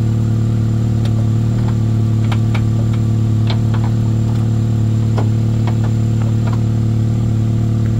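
Metal parts click and tap under a car's hood.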